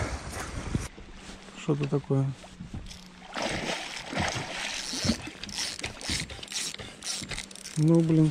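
A fishing reel clicks as its handle turns.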